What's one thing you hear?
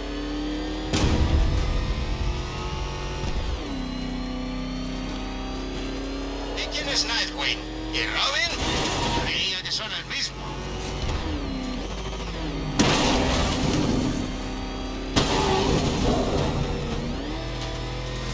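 Debris crashes and scrapes under a vehicle in sudden bursts.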